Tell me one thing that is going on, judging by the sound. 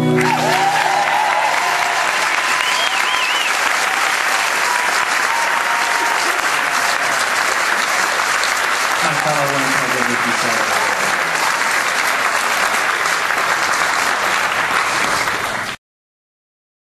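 An audience applauds and cheers in a large hall.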